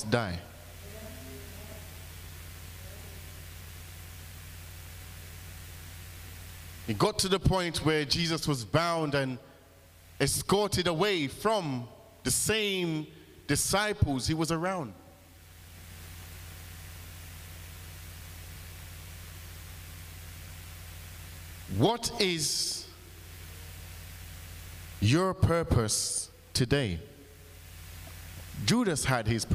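A man speaks with animation through a microphone in a room with some echo, with long pauses.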